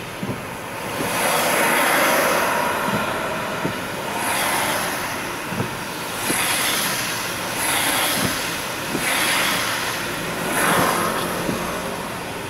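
Windscreen wipers sweep across a wet windscreen.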